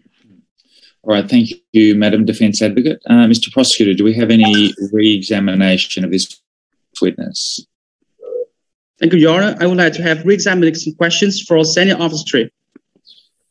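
A man speaks steadily over an online call.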